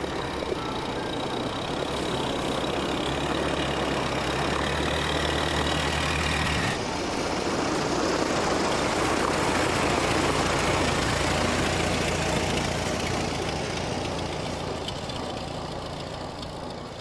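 An old car engine idles and rumbles steadily as the car drives slowly.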